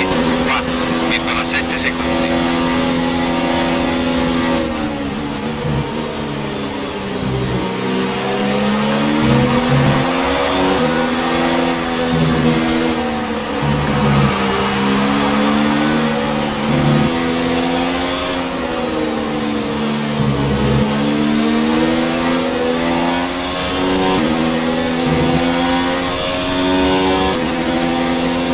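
A racing car engine screams at high revs, dropping in pitch as it brakes for corners and rising again as it speeds up.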